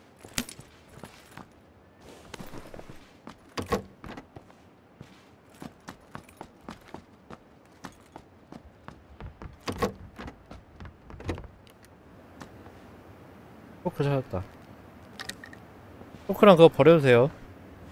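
Footsteps patter quickly across hard floors and stairs.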